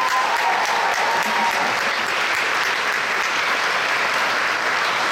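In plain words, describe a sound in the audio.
A jazz big band plays with horns and saxophones in a large hall.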